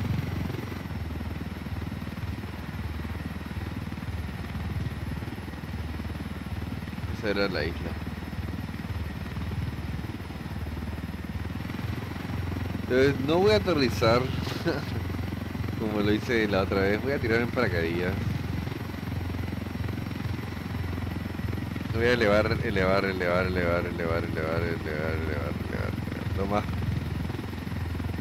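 A helicopter's rotor thrums steadily.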